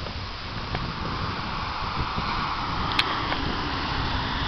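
A car drives past on a nearby road.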